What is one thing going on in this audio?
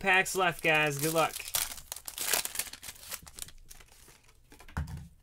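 Plastic crinkles and rustles as it is peeled away.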